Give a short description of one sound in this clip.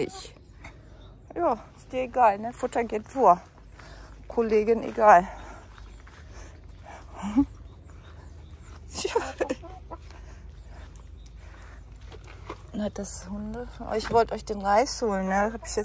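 A hen clucks close by.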